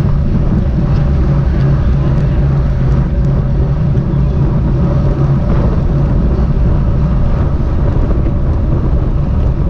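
Wind rushes loudly past a moving bicycle.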